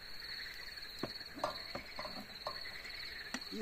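A knife scrapes on a grill pan.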